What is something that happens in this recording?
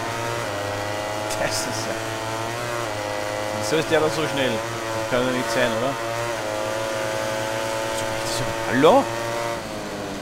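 A motorcycle engine roars at high revs, shifting gears up and down.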